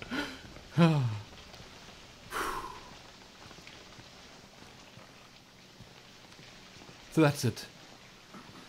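A young man speaks into a microphone with bursts of exclamation.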